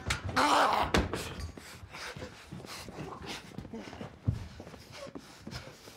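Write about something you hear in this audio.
Two men scuffle with dull thumps.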